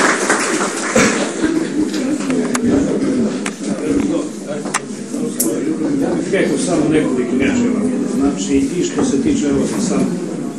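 A crowd of men and women murmurs and chatters.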